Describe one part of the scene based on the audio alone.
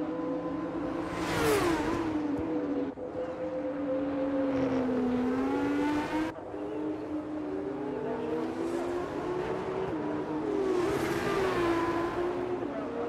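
Racing cars roar past one after another.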